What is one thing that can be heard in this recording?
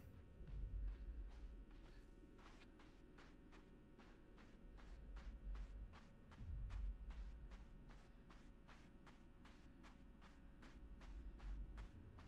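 Light footsteps run quickly over soft ground.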